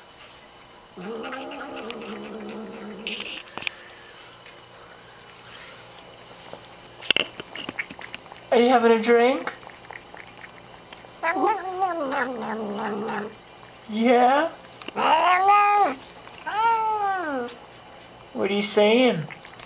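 A cat meows repeatedly with long, rising and falling cries.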